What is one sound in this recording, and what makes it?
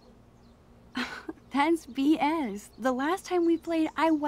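A young woman answers with a sharp, questioning tone, close by.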